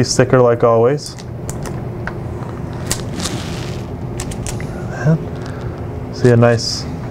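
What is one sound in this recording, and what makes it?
Plastic packaging rustles and crinkles.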